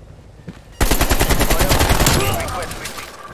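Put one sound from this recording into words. A rifle fires in rapid bursts at close range.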